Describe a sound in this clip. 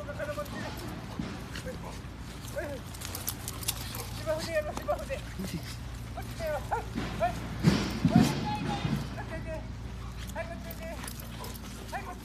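Two dogs growl and snarl playfully while tussling.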